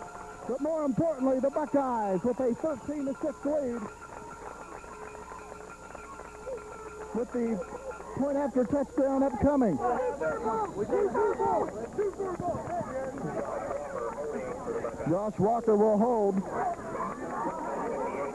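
Young men shout and cheer close by.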